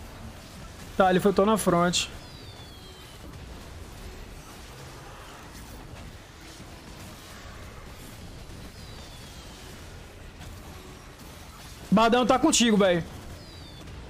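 A young man speaks with animation into a microphone, in short bursts.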